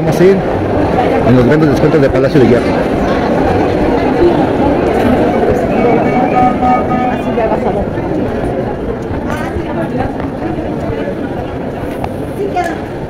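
A crowd of shoppers chatters all around in a large echoing hall.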